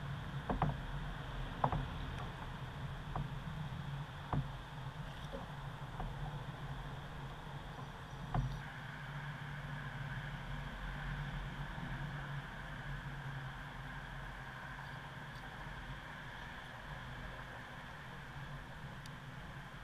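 Wind rumbles steadily outdoors.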